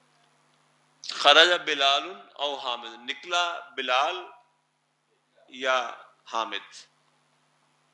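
An elderly man speaks with animation through a clip-on microphone.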